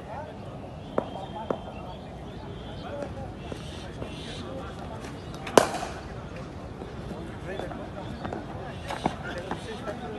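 Cricket bats sharply crack against balls nearby.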